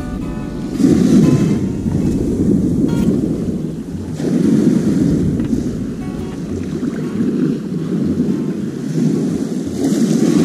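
Small waves wash onto the shore in rolling surges.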